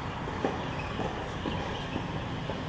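A tennis ball bounces on a hard court several times.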